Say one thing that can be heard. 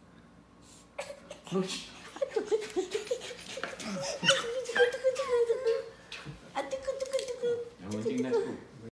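A baby babbles and squeals excitedly close by.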